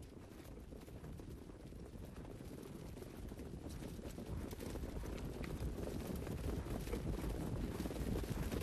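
Horses' hooves pound on a dirt track, growing louder.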